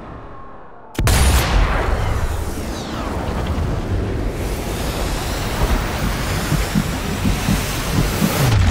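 A bullet whooshes through the air in slow motion.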